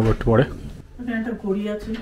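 A woman speaks nearby.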